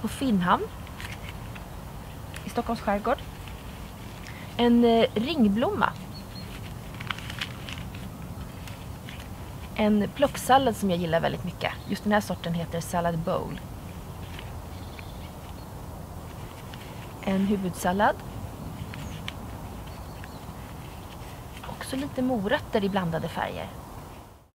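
A young woman talks calmly and clearly into a close microphone.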